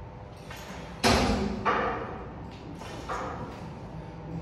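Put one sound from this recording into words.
A barbell's weight plates clank and rattle in an echoing room.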